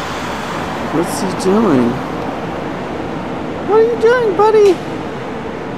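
A dog whines and howls in short cries.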